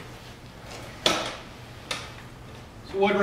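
A wooden chair scrapes and knocks on a hard floor.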